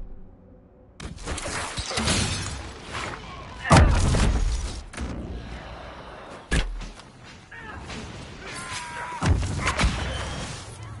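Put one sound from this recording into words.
Magic blasts and sword strikes crash loudly in a fight.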